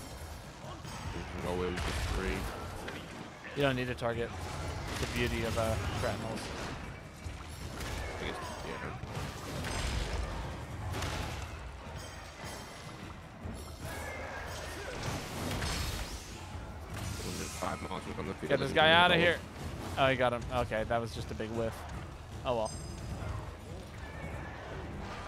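Game combat sounds clash and thud.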